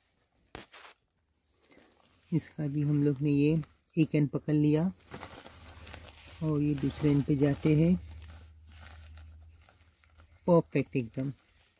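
A plastic bag crinkles and rustles as hands handle it.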